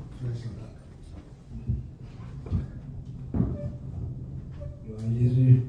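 A man speaks into a microphone, heard through loudspeakers in an echoing room.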